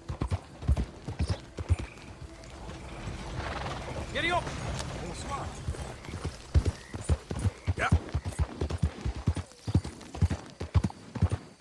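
Horse hooves thud steadily on a dirt road.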